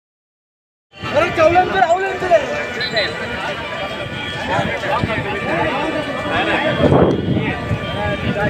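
Men shout and talk excitedly outdoors nearby.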